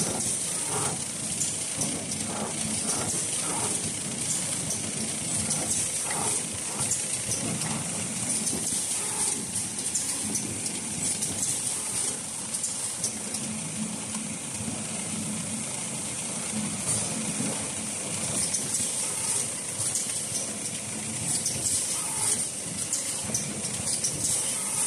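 A packing machine hums and clatters steadily.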